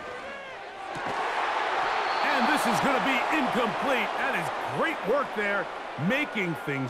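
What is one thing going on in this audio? A large stadium crowd roars loudly.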